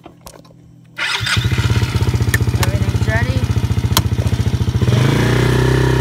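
A quad bike engine starts up and idles with a rapid putter.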